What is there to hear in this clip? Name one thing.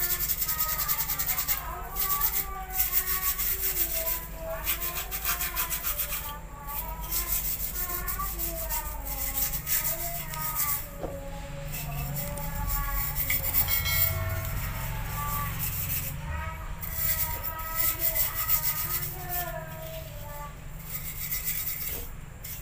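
Hands scrub a metal part with a rough pad.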